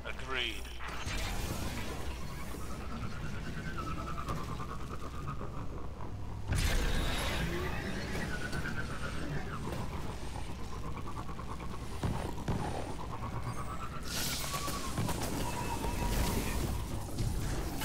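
A hover bike's engine hums and whines, rising and falling in pitch.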